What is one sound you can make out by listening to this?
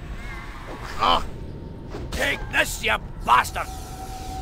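Swords clash and blows thud in a fantasy battle.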